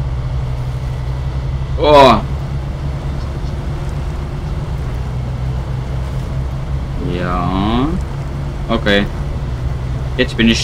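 A pickup truck engine drones under load.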